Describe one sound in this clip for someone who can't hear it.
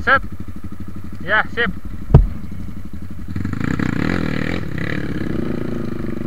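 A dirt bike engine chugs and then revs hard as it climbs.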